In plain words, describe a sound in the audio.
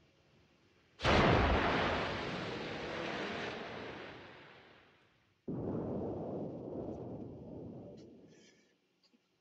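A loud explosion booms over the water and rumbles away.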